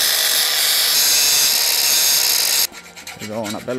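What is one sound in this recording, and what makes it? An angle grinder whines loudly as it cuts through metal.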